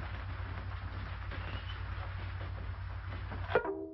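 A ukulele is strummed softly.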